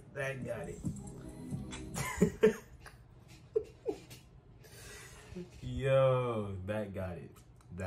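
A young man laughs close to a microphone.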